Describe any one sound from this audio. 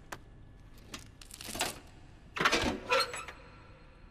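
Tape rips off a metal panel.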